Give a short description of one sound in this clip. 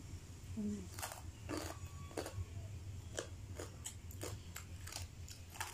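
Crispy food crunches as a young woman chews it close to the microphone.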